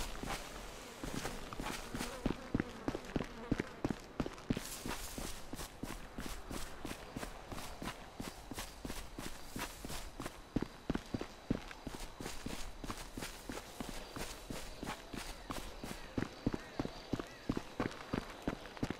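Footsteps crunch steadily over rough, rocky ground.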